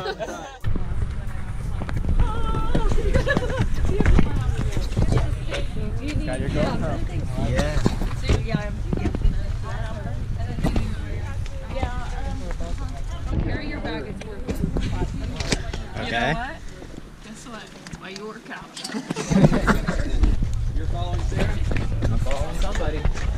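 Young men talk and chat nearby.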